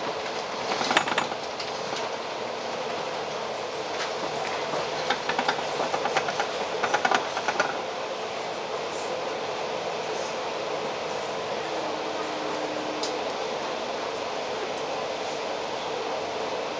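A bus engine hums steadily from the upper deck.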